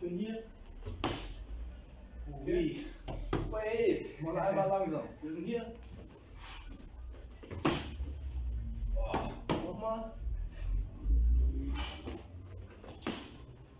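Kicks and punches thud against padded gloves.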